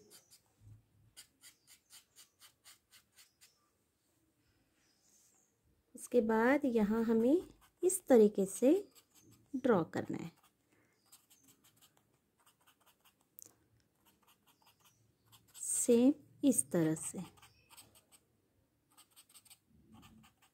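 A pencil scratches back and forth on paper in quick strokes.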